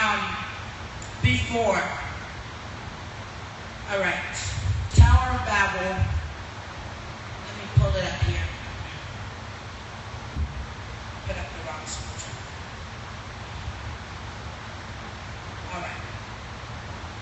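A woman speaks through a microphone and loudspeakers in a large echoing hall, reading out calmly.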